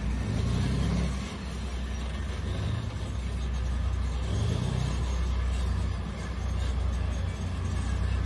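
Tank tracks clank and grind on a road.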